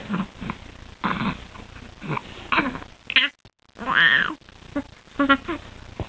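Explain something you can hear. A baby giggles and laughs loudly.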